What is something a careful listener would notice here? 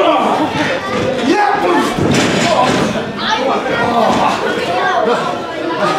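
Bodies thud heavily onto a wrestling ring's mat.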